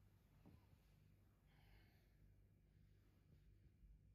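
A sofa's cushions creak and rustle as a man sits up.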